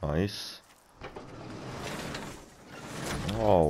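A metal garage door rattles as it rolls up.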